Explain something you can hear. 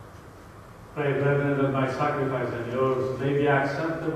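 A woman sings into a microphone, heard through loudspeakers in a large echoing hall.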